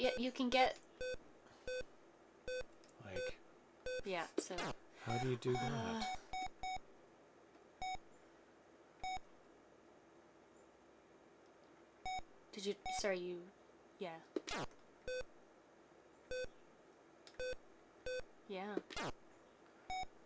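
A woman talks casually into a microphone.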